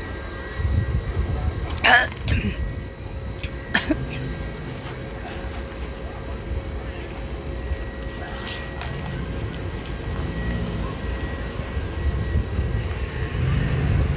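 An SUV engine rumbles as the vehicle drives slowly past.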